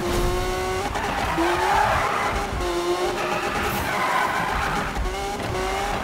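Tyres screech on a wet road.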